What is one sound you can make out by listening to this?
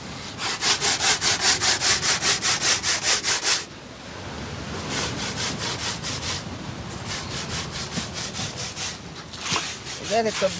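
Something is grated against a metal grater with fast, rhythmic scraping strokes.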